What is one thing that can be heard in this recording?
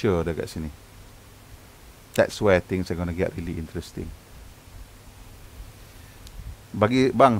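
A man speaks calmly into a headset microphone, in short bursts.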